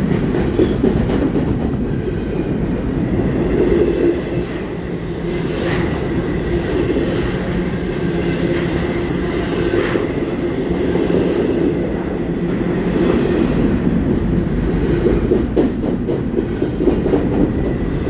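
A freight train rumbles loudly past at close range.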